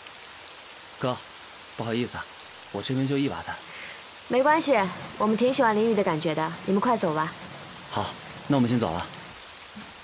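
A young woman speaks quietly nearby.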